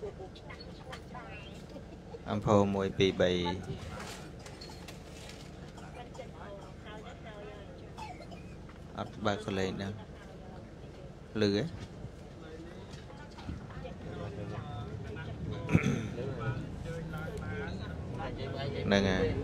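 Passengers murmur and chatter quietly.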